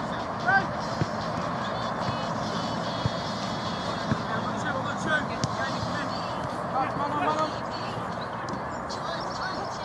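A football thuds as it is kicked.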